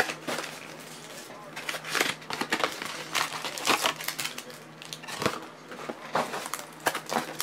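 Foil wrappers crinkle and rustle as they are handled.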